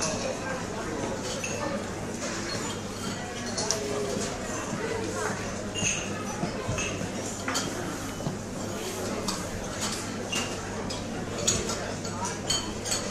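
Metal tools clink and tap against car parts.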